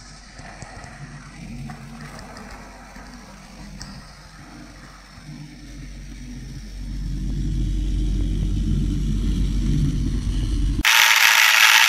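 A model train rumbles along its track.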